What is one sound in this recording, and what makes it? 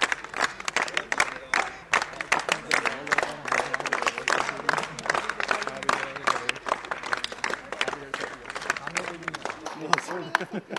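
A crowd claps quickly and steadily.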